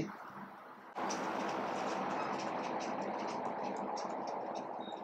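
A marker squeaks and scratches on a whiteboard.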